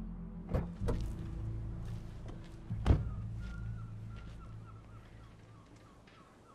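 A car engine idles with a low hum and fades away.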